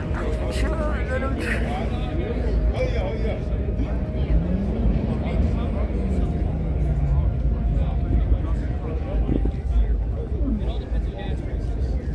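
A crowd of men and women chatter in the background outdoors.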